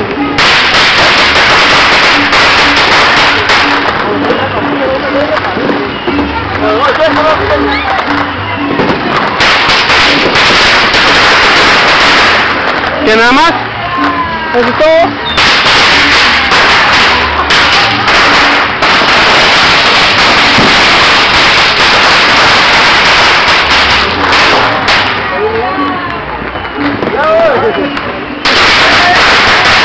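Fireworks hiss and crackle loudly nearby.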